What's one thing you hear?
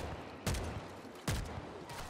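Gunfire bursts from a rifle.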